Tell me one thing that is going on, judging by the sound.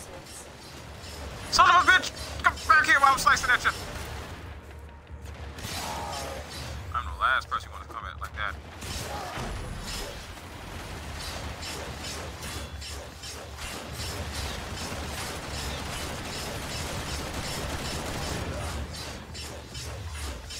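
Gunshots and energy blasts crack in a video game.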